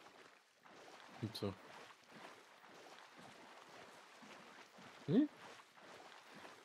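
A dog pushes through tall, rustling grass.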